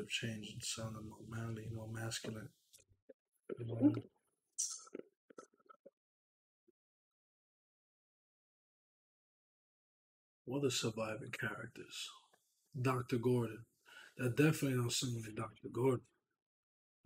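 A man speaks casually into a close microphone, with pauses.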